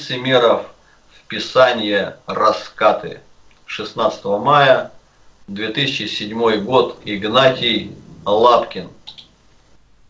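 An elderly man reads aloud steadily, heard through an online call.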